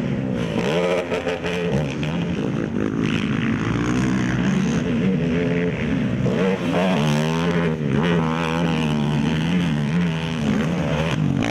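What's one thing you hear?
A racing quad engine revs hard, rising and falling in pitch.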